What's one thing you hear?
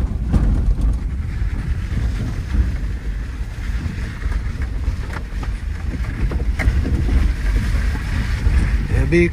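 Tyres crunch and bump over a rough dirt track.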